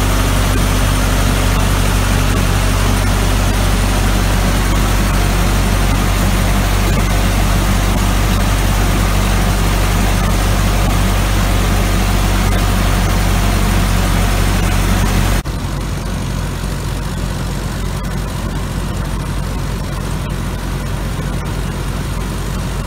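A large harvester engine drones loudly and steadily.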